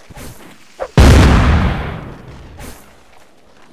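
A cannon fires with a loud boom that rolls away and fades.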